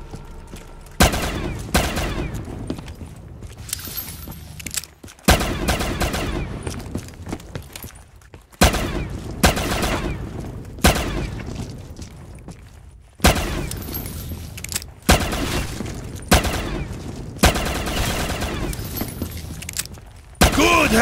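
A pistol fires loud single shots, each with a short ringing echo.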